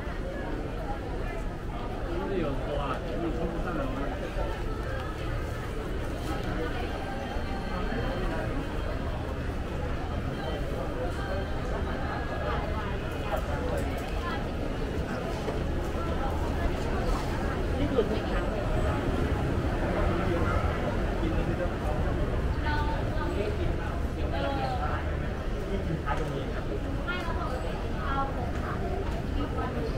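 A crowd murmurs with indistinct chatter in a large echoing hall.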